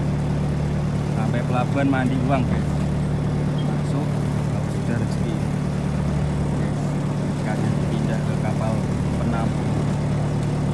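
Men on a boat call out to one another from a distance.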